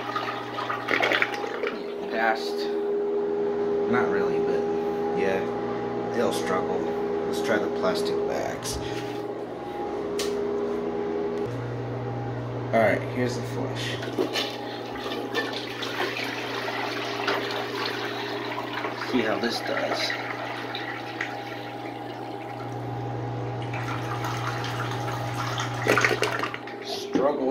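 Water splashes and swirls down a toilet bowl with a rushing gurgle.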